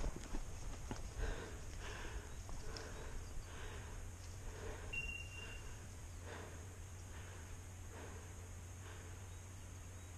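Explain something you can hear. Footsteps crunch on dry forest ground at a steady pace.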